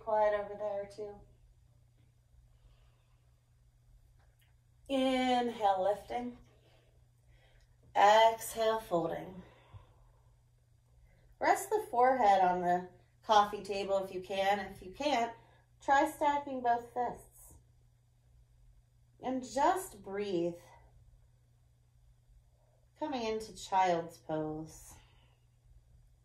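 A woman speaks calmly and slowly, close by, with long pauses.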